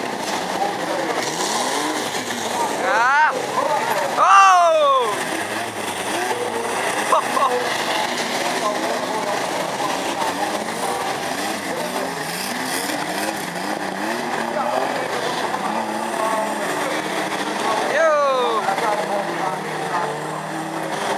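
Car engines roar and rev loudly nearby.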